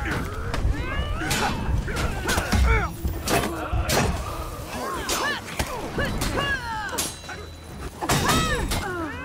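Swords clash and clang in a fight.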